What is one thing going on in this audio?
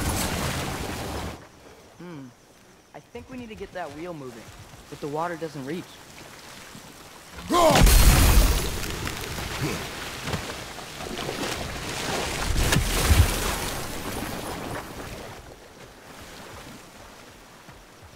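Water gushes and splashes steadily.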